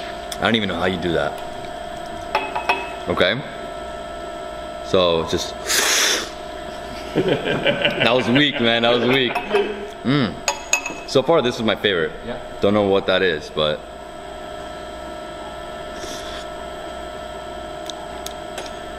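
A metal spoon clinks against a cup.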